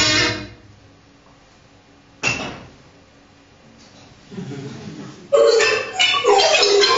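Loud electronic tones burst out in short, warbling phrases.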